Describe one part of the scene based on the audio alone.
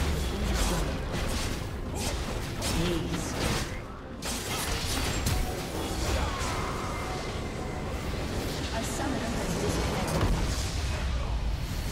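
Game spell effects crackle and clash in rapid bursts.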